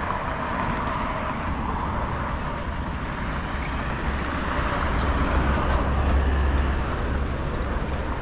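A motor scooter rides past.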